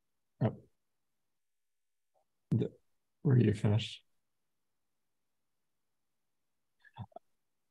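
A young man speaks briefly over an online call, in short bursts.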